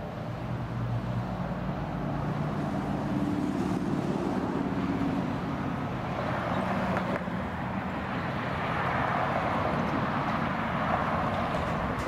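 A jet airliner roars as it approaches overhead, growing louder.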